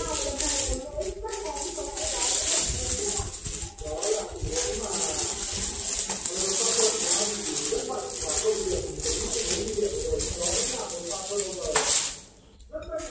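Plastic wrap crinkles as it is handled and pulled off.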